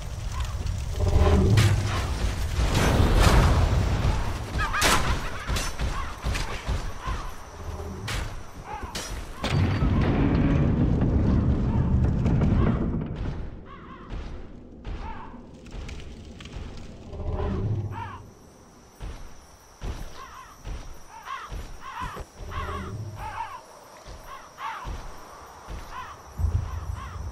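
Footsteps run over stone.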